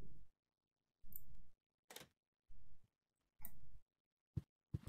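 Soft footsteps thud on a wooden floor.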